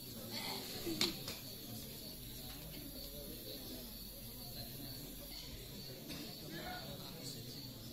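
A sparkler fizzes and crackles.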